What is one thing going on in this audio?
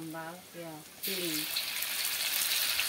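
Hot oil sizzles loudly in a wok.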